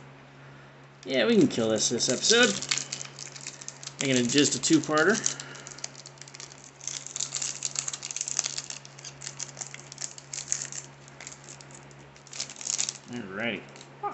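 A foil booster pack crinkles as hands tear it open.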